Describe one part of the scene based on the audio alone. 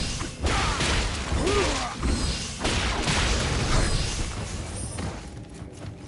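A sword clashes and slashes in a fight.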